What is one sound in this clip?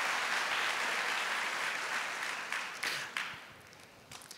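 A crowd applauds, fading away.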